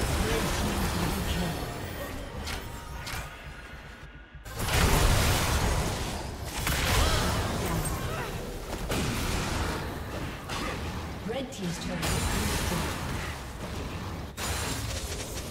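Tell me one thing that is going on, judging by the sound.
Game spells and attacks crackle and clash in a busy fight.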